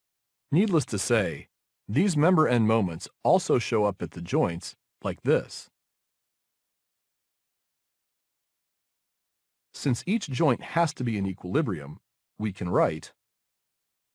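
A man explains calmly through a microphone, in short bursts with pauses.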